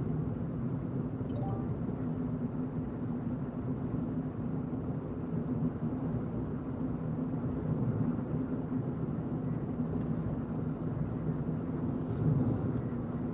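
A car engine hums steadily from inside while driving.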